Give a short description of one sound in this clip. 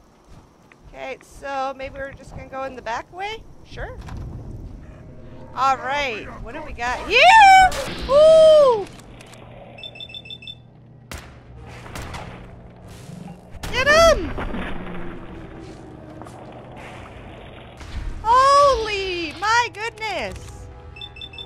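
A young woman talks and exclaims with animation, close to a microphone.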